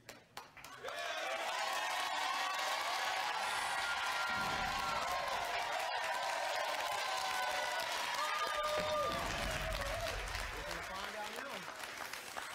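A studio audience cheers and claps loudly.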